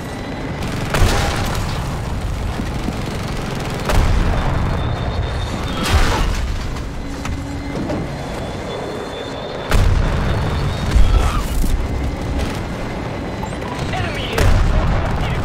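Explosions boom loudly, several times.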